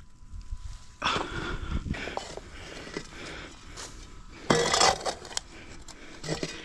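A metal digging bar scrapes and thuds into dry earth.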